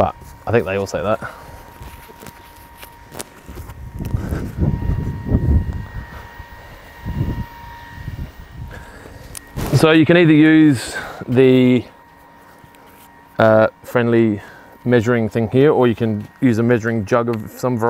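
A man talks calmly and clearly, close by.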